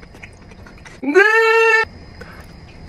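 A young man hums with delight, close by.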